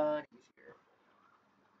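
A man speaks briefly and close to a microphone.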